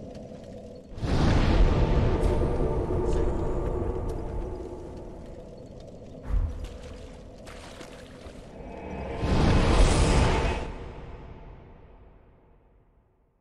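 Flames roar up in a loud rushing whoosh.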